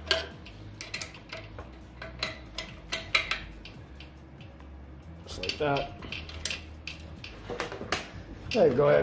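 Metal parts clank and click.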